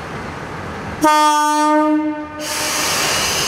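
A train's horn sounds loudly for about a second.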